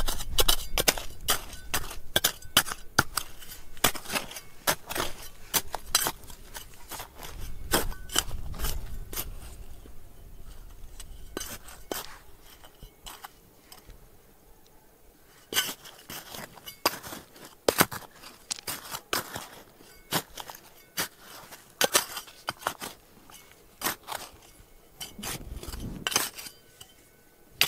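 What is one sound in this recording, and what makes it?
A trowel scrapes and digs into dry, gravelly soil.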